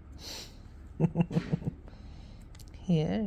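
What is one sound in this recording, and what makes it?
A puppy makes short high yips and grunts close by.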